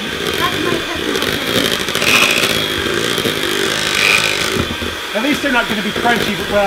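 An electric hand mixer whirs steadily while beating batter.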